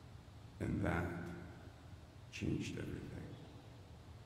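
An elderly man speaks slowly and calmly into a microphone in a large echoing hall.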